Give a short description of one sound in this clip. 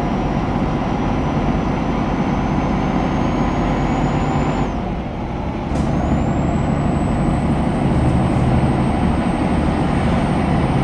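A truck engine hums steadily with a rising whine.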